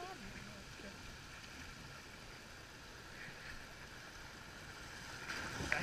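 Water rushes and splashes around a small boat outdoors.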